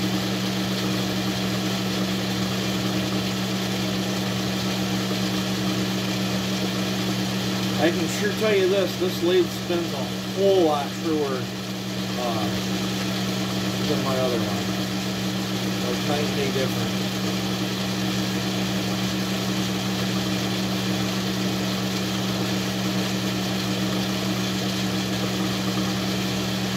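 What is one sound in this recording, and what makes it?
A metal lathe hums steadily as it spins.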